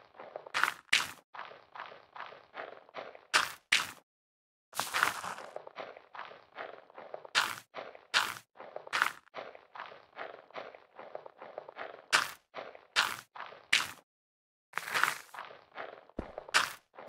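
Crops are rapidly broken and replanted with soft, quick crunching taps.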